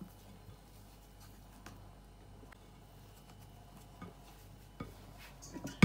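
A spatula scrapes softly against the side of a bowl.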